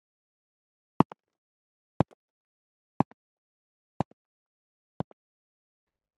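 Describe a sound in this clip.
Footsteps tap on a hard floor at an even pace.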